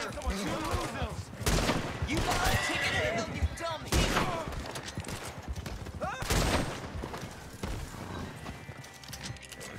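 A horse gallops with thudding hooves.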